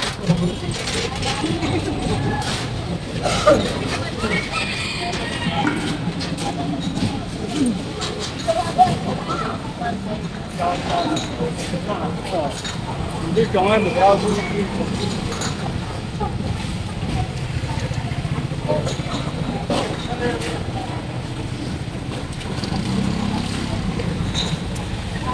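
Voices of men and women chatter around a busy outdoor street.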